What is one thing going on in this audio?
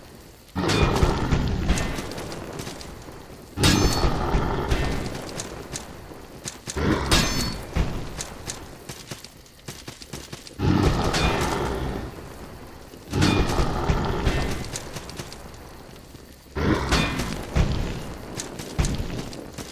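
Metal blades clash and ring out in quick strikes.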